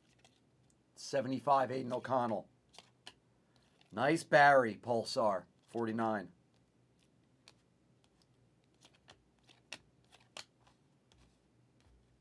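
Trading cards rustle and slide against each other in hand.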